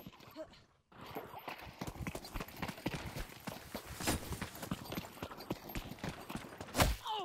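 Footsteps patter quickly over grass and stone.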